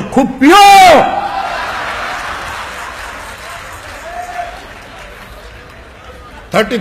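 A large crowd cheers and claps.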